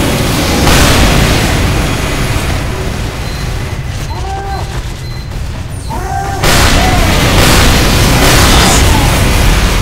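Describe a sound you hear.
A flamethrower roars with a rushing whoosh.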